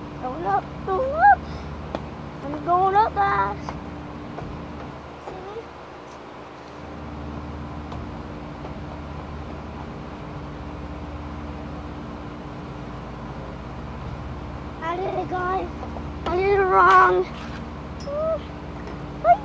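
A young girl talks and squeals playfully close by.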